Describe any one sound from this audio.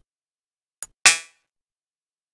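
A game buzzer sounds once when an item can't be used.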